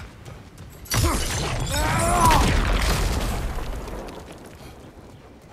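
Fire bursts with a loud roaring whoosh.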